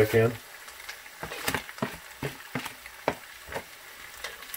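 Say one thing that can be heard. A spoon scrapes and taps against a plate.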